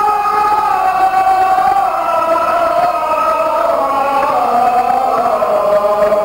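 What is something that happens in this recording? A group of men chant together in a slow, sustained drone, echoing in a hall.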